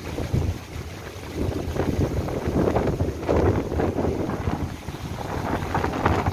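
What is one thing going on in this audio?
Strong wind gusts through palm fronds.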